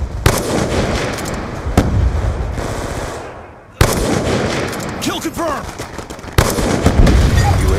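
A sniper rifle fires with a loud crack that echoes away.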